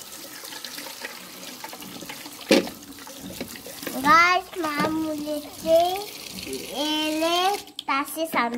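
Water pours from a tap and splashes onto fruit.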